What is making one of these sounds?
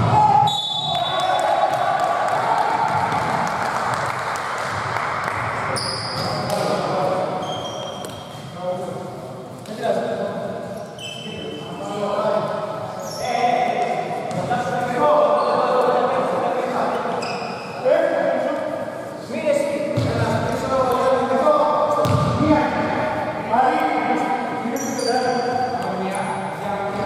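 Men talk and call out in a large echoing hall.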